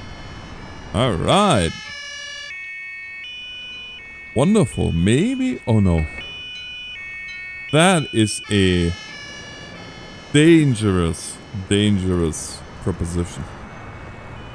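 An ambulance siren whoops in short bursts.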